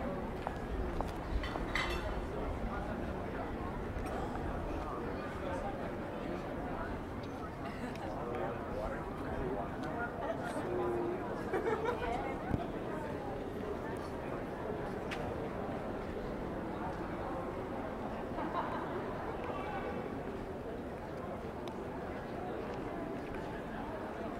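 A crowd of men and women chatters at café tables nearby in an open square.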